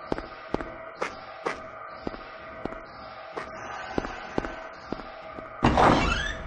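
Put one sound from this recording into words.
Footsteps walk at a steady pace on hard ground.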